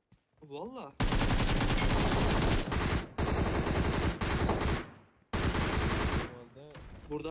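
Rapid gunshots fire in loud bursts.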